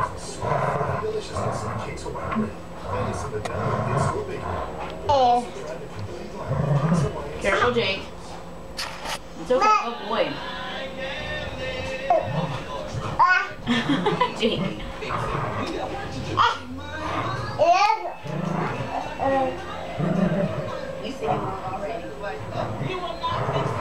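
A baby squeals and babbles excitedly close by.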